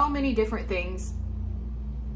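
A young woman speaks briefly and calmly, close to the microphone.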